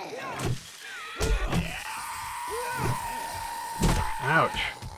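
A heavy hammer thuds into flesh with hard, sudden blows.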